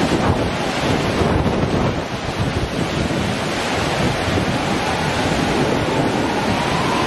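Rough surf crashes and roars.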